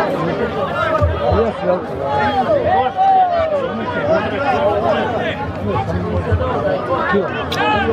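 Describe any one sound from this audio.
A crowd of men and women chatters loudly outdoors.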